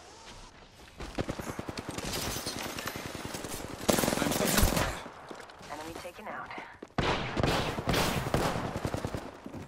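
Gunfire rattles in rapid bursts nearby.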